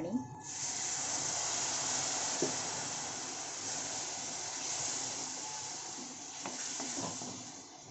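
Water pours into a hot pan and sizzles loudly.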